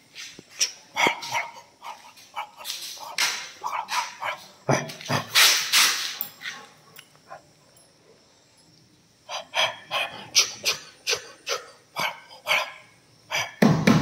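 A metal chain rattles and clinks close by.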